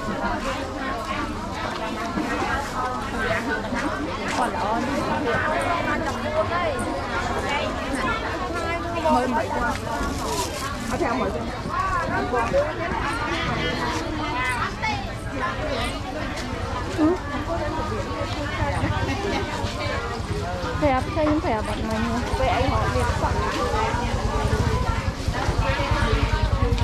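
A crowd of men and women chatters all around, close by and farther off, outdoors.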